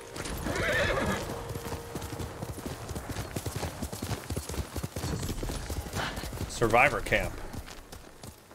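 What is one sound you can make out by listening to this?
Horse hooves pound quickly over grass.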